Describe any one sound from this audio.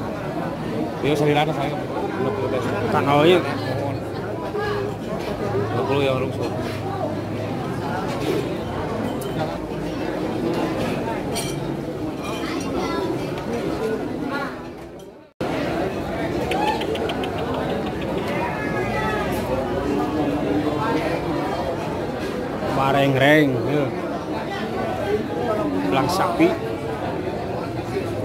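A crowd of men chatters in the background.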